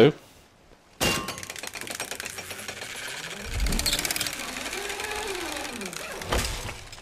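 A pulley and chain creak and rattle as a rope pulls taut.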